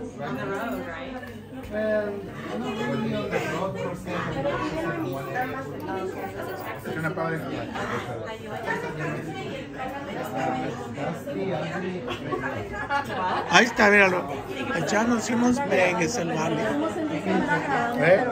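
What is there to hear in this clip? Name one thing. Several adults chat and talk over each other close by in a busy room.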